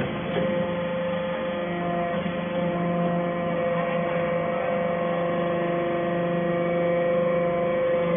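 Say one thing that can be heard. A machine hums and whines steadily and loudly.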